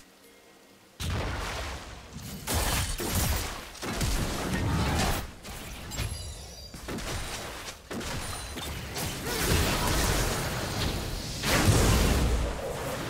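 Magic blasts and weapon strikes crash and boom in a hectic fight.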